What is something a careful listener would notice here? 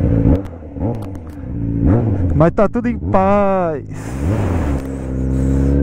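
A motorcycle engine revs up and down sharply.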